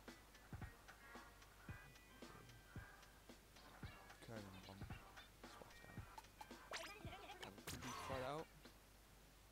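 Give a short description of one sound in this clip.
A cartoon character babbles in squeaky gibberish.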